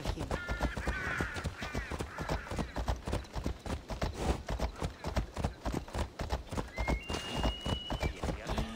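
Horse hooves clop steadily on a stone road.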